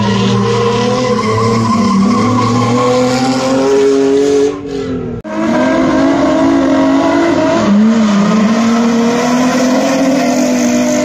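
Car engines roar loudly and rev up and down.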